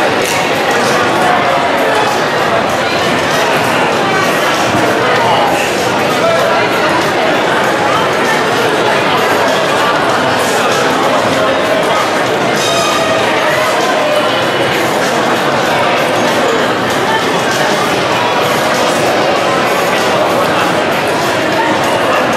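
A crowd of people chatter all around in a busy, echoing room.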